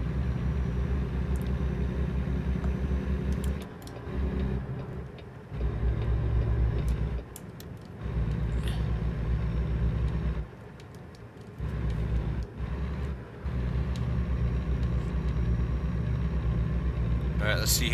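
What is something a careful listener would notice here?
A truck engine rumbles in a steady low drone.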